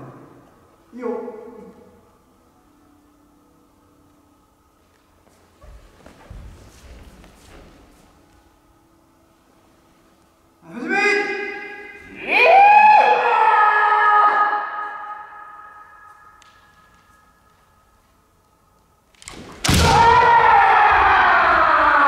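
Young fencers shout loud, drawn-out cries that echo through a large hall.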